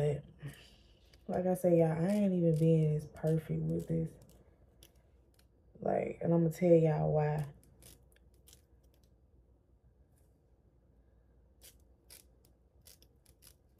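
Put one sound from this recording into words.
Scissors snip lightly.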